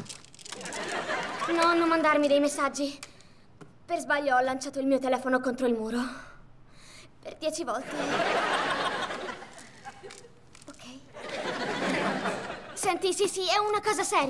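Another young woman answers in a puzzled, expressive voice.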